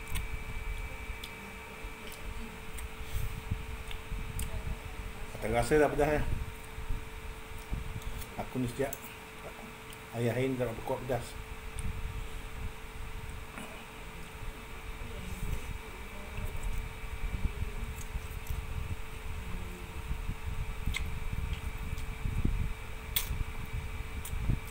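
Metal cutlery clinks against a plate.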